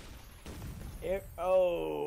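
A second man speaks over a microphone.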